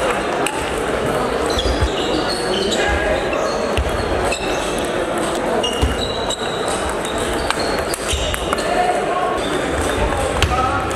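Table tennis balls click off paddles and tables in a large echoing hall.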